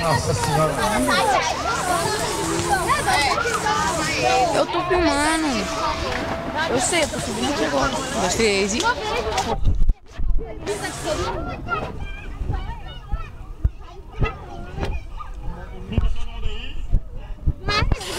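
Water splashes as people move about in a pool.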